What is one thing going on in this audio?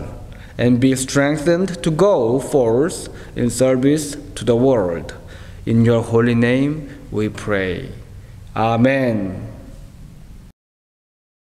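A man prays aloud calmly through a microphone in a reverberant room.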